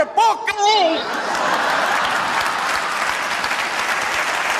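People in an audience clap their hands.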